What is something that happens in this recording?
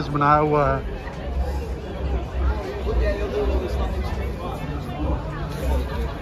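A crowd of young men and women chatter nearby outdoors.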